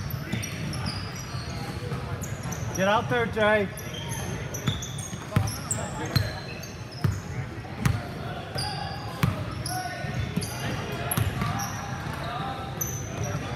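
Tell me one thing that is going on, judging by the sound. Sneakers squeak sharply in an echoing gym.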